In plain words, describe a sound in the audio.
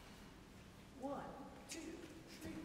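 A man speaks briefly in a large echoing hall.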